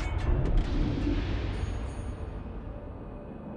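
Heavy naval guns fire with a deep boom that rumbles away.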